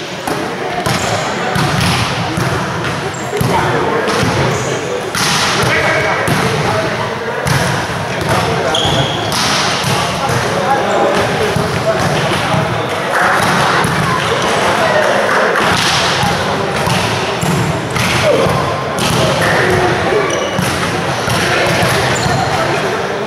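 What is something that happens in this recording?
Players' shoes squeak on the court floor.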